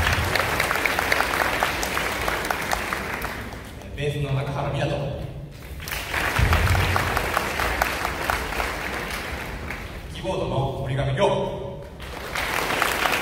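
A rock band plays loudly on electric guitars, keyboard and drums in a large hall.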